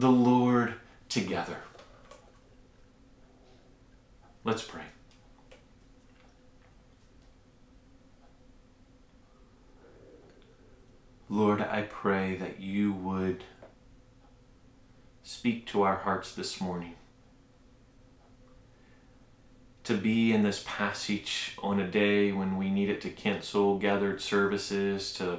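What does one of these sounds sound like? A man speaks calmly and closely into a microphone, with pauses.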